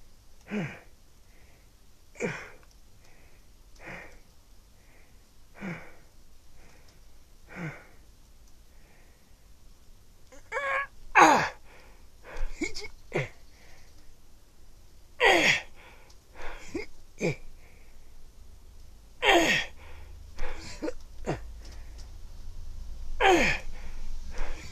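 A young child's voice calls out in short bursts nearby.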